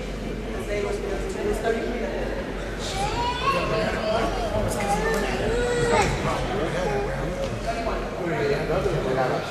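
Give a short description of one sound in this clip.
Spectators chatter nearby in a large echoing gym.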